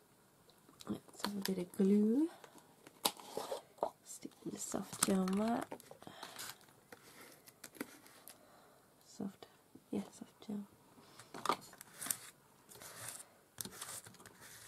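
Fingers rub and brush across paper.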